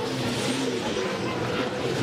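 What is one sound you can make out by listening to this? Racing car engines roar past at high speed.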